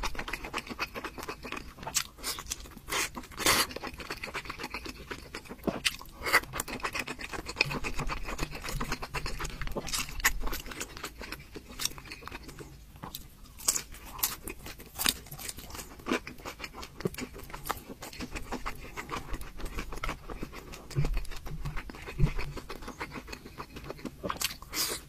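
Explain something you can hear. A young man chews and slurps food loudly, close up.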